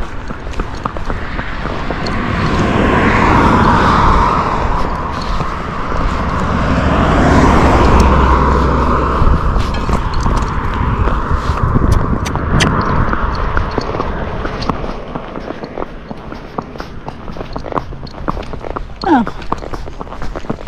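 Horse hooves clop steadily on a paved road.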